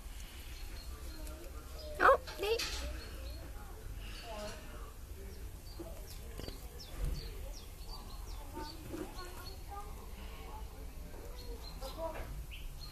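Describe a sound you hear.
Dry hay rustles and crackles as a rabbit moves through it.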